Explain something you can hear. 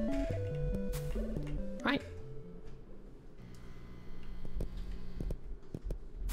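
Game music plays a bouncy tune.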